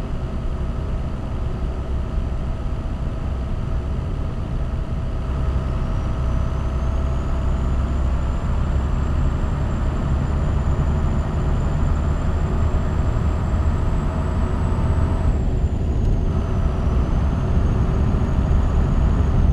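A truck engine rumbles steadily, heard from inside the cab.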